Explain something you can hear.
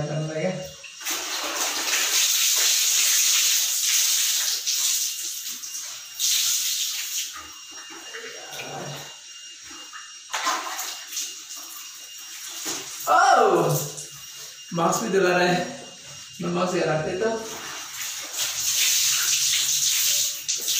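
Water splashes as a man wrings and rinses cloth in a bucket.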